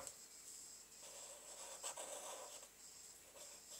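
A marker squeaks faintly as it writes on paper.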